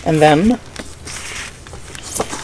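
Paper rustles softly as a booklet is handled.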